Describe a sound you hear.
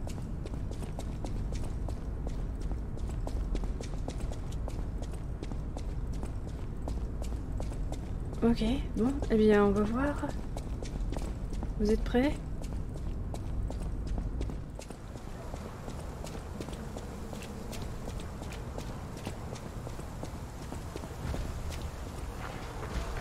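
Quick footsteps run across a stone floor.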